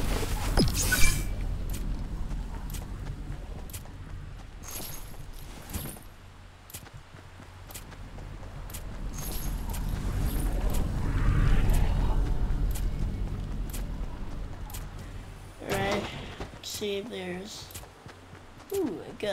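Footsteps patter quickly and steadily on the ground.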